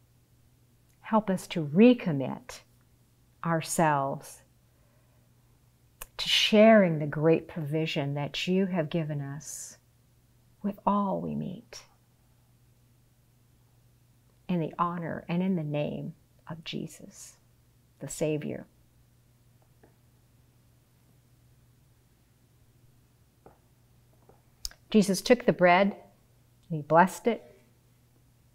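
A middle-aged woman speaks calmly and slowly into a microphone, with pauses between phrases.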